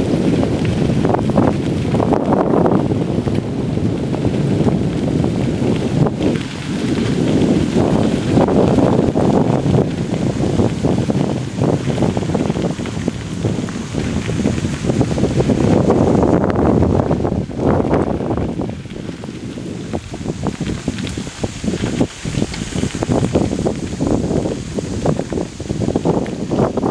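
Bicycle tyres crunch over gravel close by.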